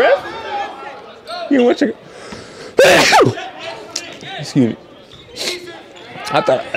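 A young man talks excitedly and exclaims close to a microphone.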